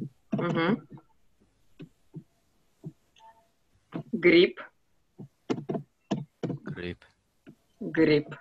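A young woman speaks clearly and slowly through an online call.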